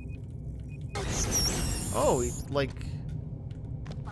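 A ray gun fires a crackling beam.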